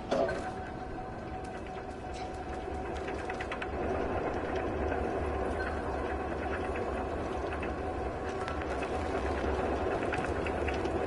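Rain falls steadily all around.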